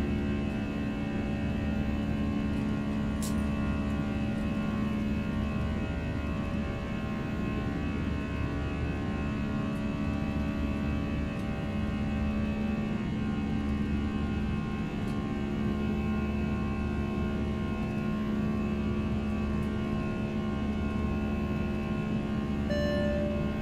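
A steady jet engine drone hums inside an airliner cockpit.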